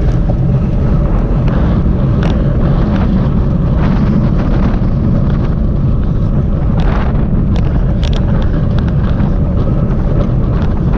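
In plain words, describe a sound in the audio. Wind rushes loudly past, heard from a moving bicycle.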